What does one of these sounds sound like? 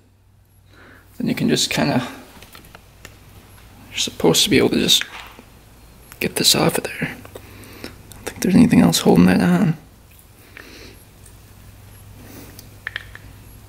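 Metal parts click and scrape against each other as they are handled.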